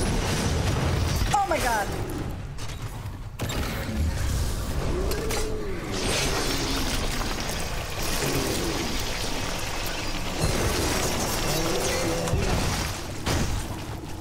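Flames roar and crackle as a creature burns.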